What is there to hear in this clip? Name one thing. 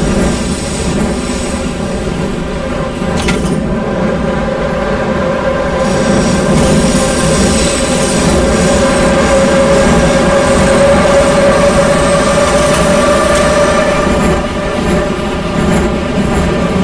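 A subway train rumbles steadily through a tunnel, its motor humming.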